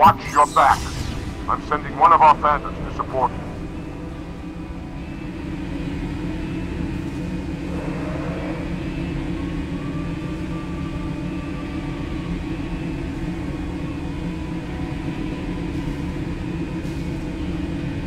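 A hovering craft's engine hums steadily.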